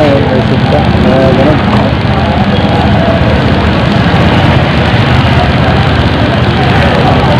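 Men and women on a busy street talk nearby.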